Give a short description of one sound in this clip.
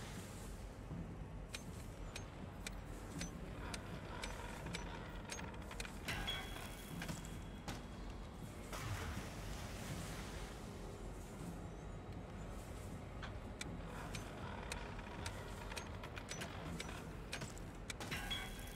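A clock hand clicks steadily as it is turned around.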